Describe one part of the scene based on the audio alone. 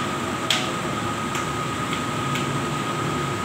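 Metal tools click and tap against a metal machine.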